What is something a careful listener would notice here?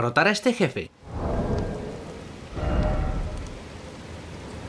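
Soft whooshing menu sounds play twice.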